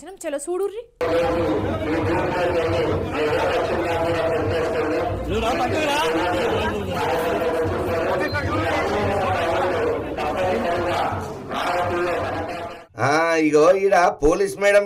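A crowd of men and women shouts and argues loudly nearby.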